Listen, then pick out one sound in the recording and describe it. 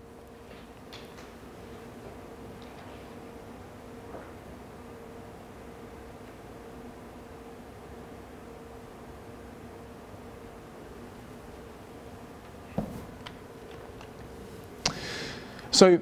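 A man speaks calmly at a distance.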